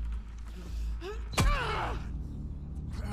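A man cries out in distress.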